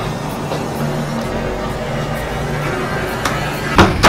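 A door swings shut.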